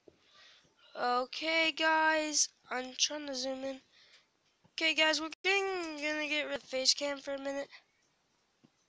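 A young girl talks excitedly, close to a microphone.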